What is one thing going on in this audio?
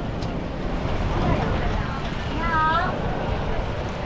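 A woman calls out nearby.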